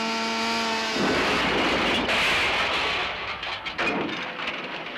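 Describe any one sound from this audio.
A car crashes and tumbles down a rocky slope.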